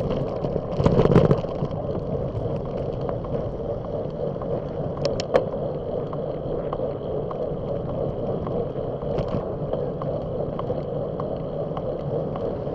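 Wind rumbles steadily across a microphone on a moving bicycle.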